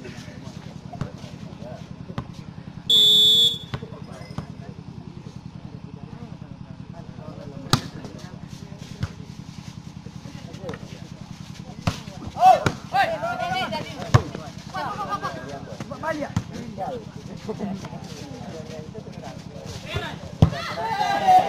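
A volleyball is struck hard, again and again.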